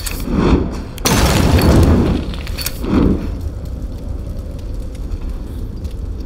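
A fire roars and crackles as dry brush burns.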